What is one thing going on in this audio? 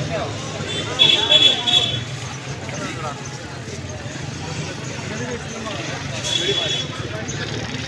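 Parrots squawk loudly from close by.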